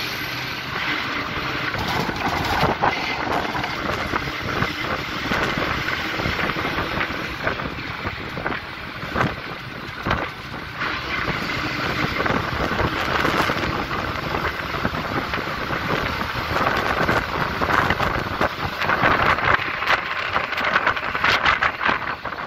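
Wind rushes in through an open bus window.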